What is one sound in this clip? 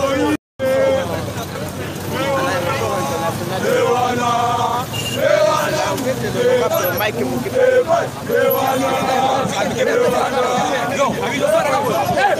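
A crowd of men and women shout and chant loudly outdoors.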